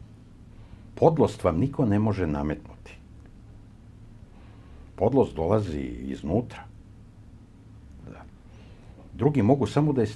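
An elderly man speaks calmly and deliberately into a microphone, close by, with pauses.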